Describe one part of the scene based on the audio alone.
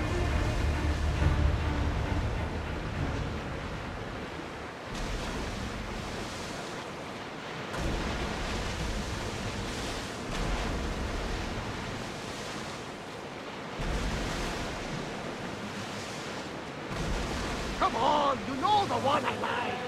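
Waves rush and splash against a sailing ship's hull.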